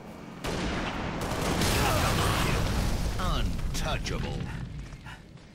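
A vehicle explodes with a loud roar.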